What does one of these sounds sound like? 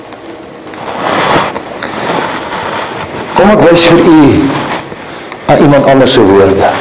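A man speaks with emphasis into a microphone in a large echoing hall.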